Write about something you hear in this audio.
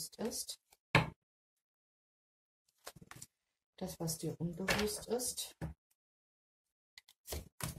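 Playing cards are shuffled by hand.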